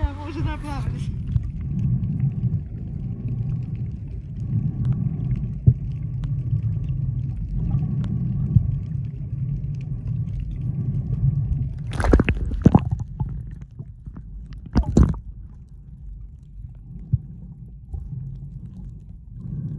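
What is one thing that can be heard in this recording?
Water rumbles and gurgles, heard muffled underwater.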